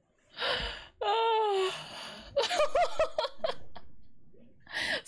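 A young woman laughs loudly and excitedly, close to a microphone.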